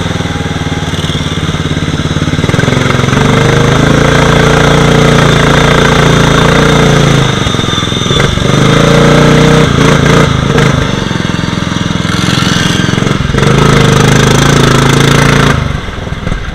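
A small engine roars close by, rising and falling as it revs.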